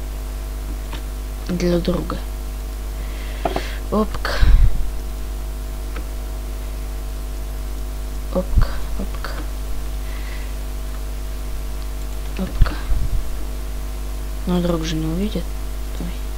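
Stone blocks thud softly as they are placed one after another.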